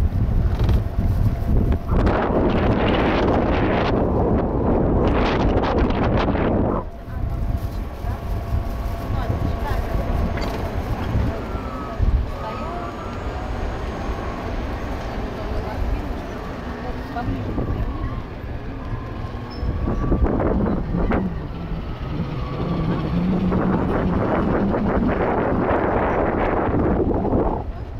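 Tyres roll steadily on smooth pavement.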